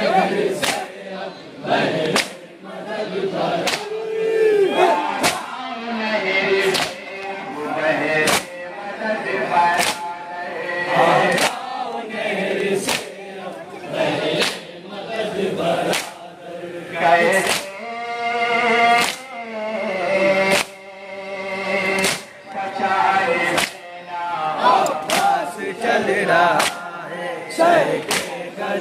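A crowd of men beats their chests in a steady rhythm.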